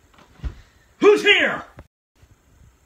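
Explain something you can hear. A young man screams loudly close by.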